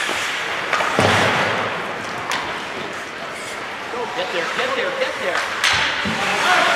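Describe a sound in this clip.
Hockey sticks clack sharply against a puck.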